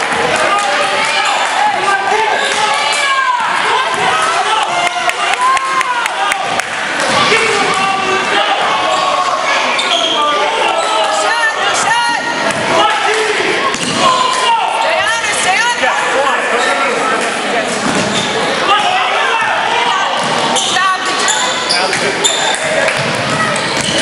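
Sneakers squeak on a hardwood court in an echoing gym.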